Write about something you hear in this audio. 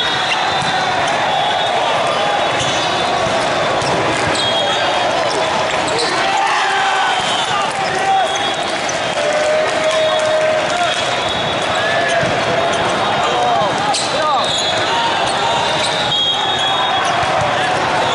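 A volleyball smacks against hands.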